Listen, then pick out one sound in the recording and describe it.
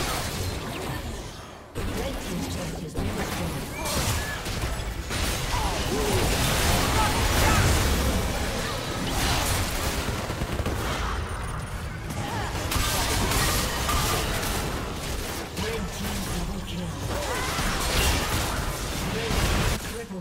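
Spell effects whoosh and crackle in a fast game battle.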